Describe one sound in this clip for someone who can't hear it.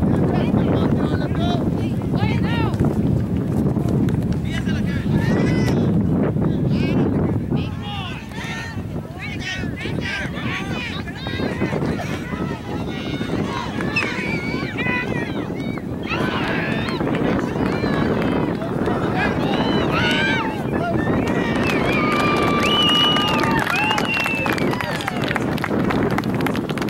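Young players and adult spectators shout and call out across an open field outdoors.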